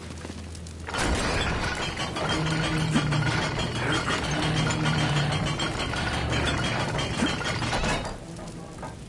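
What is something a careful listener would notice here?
A heavy wooden crate scrapes loudly across a stone floor.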